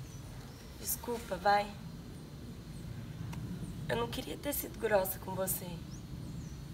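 A young woman speaks softly and with feeling, close by.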